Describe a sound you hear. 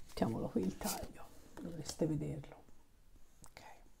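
A playing card is laid down softly on a table.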